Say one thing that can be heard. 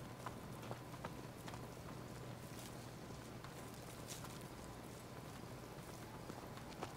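Footsteps crunch softly on gravel and grass.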